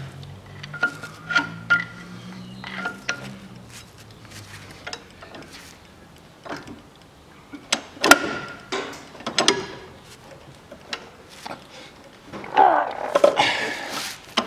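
A metal tool scrapes and taps against rusty metal.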